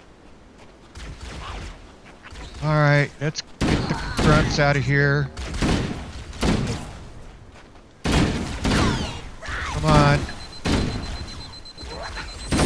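An automatic rifle fires in short bursts.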